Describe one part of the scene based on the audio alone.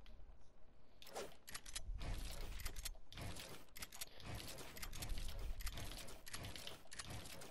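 Building pieces snap into place with quick clicks.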